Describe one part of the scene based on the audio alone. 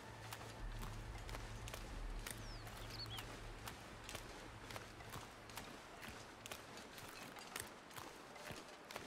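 Footsteps crunch steadily on snowy ice.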